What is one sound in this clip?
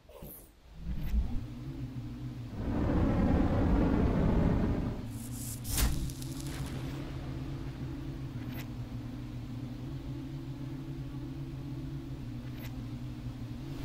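A small vehicle's engine hums steadily.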